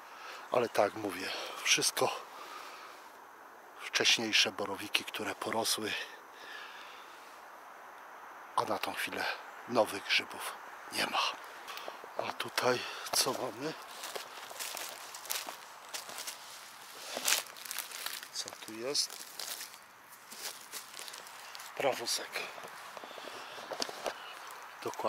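Footsteps crunch and rustle over dry leaves and twigs on a forest floor.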